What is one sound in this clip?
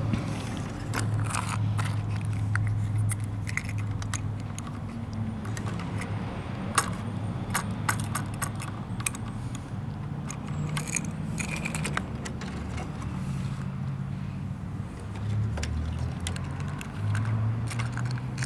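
Small plastic pieces click and clatter against a hard surface.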